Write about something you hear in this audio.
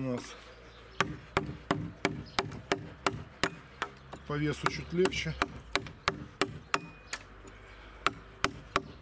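A wooden mallet strikes a chisel into wood in steady blows.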